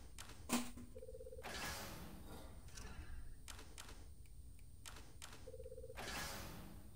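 A short electronic menu tone chimes.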